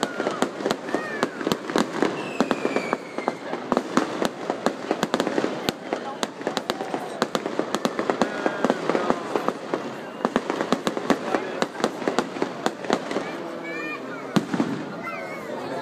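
Fireworks pop and crackle in rapid bursts outdoors.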